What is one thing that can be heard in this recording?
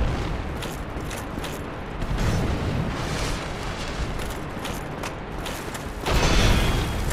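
Footsteps scuff on stone.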